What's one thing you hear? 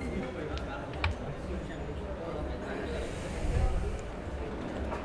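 A wooden disc is flicked and clicks sharply against other discs on a board.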